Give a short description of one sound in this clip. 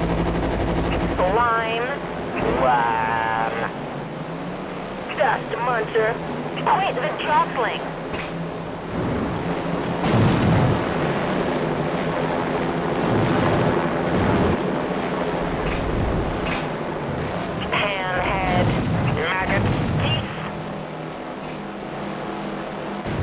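Toy-like racing car engines hum steadily.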